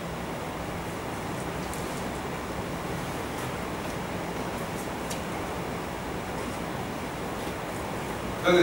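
A man reads aloud from a book.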